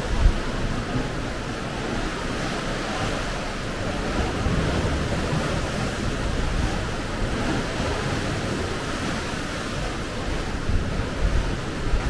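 Sea waves wash against rocks below.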